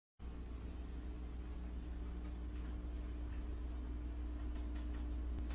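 A refrigerator hums steadily close by.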